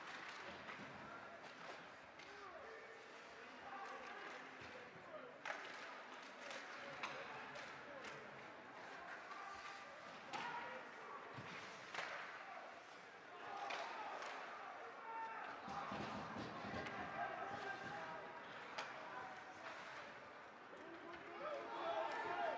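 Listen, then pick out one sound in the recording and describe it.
Skates scrape and carve across the ice.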